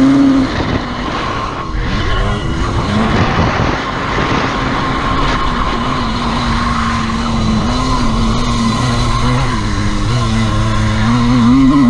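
A motorcycle engine revs loudly up close, rising and falling in pitch.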